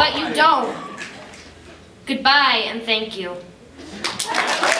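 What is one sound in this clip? A young girl speaks expressively into a microphone.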